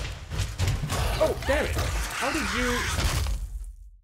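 A creature hisses and shrieks loudly up close.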